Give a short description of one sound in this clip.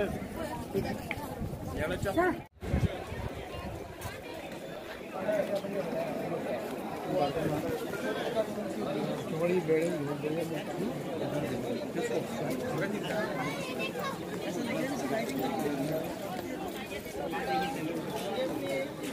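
A crowd of people chatter outdoors.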